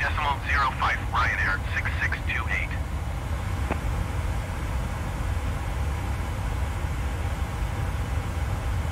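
Jet engines hum with a low, steady drone.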